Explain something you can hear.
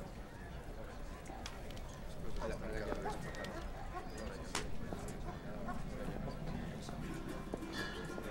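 A man speaks quietly nearby.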